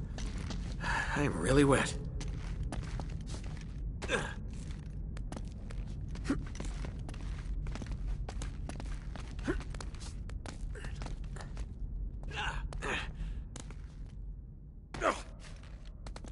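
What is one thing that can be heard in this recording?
Footsteps patter on rock.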